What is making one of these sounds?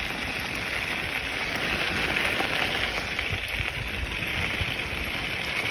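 Skateboard wheels roll and rumble over gravel.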